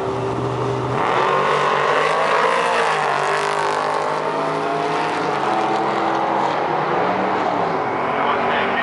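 A truck engine roars and climbs in pitch as it accelerates hard down the track.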